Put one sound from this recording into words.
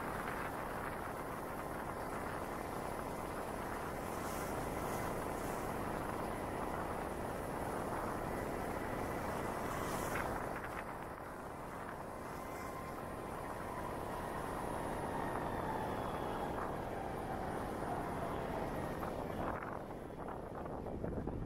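Wind rushes past steadily while riding and dies down on stopping.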